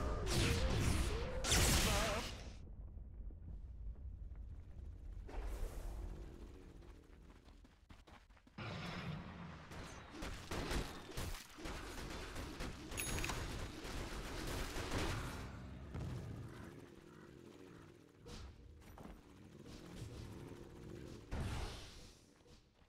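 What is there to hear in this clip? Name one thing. Spells burst and weapons clash in a noisy fight.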